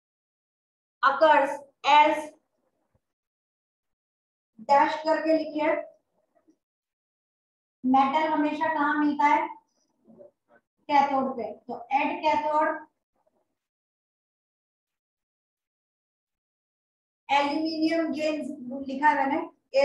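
A young woman speaks calmly, explaining, close by.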